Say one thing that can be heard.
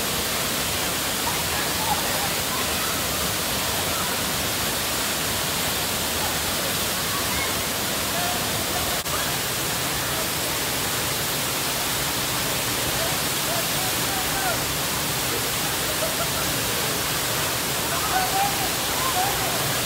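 A waterfall roars steadily, splashing into a pool.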